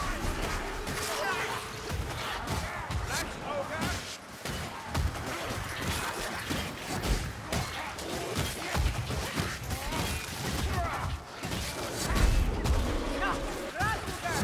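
Weapons strike and slash flesh in quick, repeated blows.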